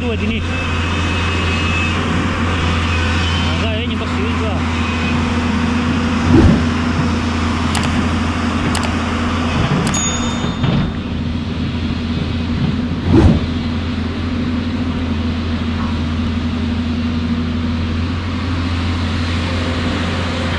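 A river rushes and splashes over stones.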